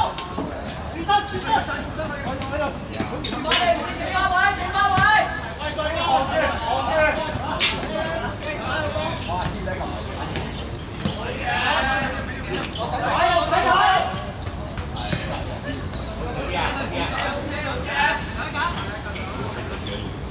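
A football thuds as it is kicked.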